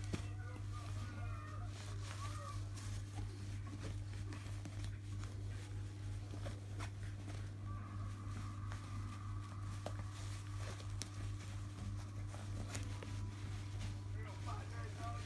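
A dog sniffs and licks with small wet clicks.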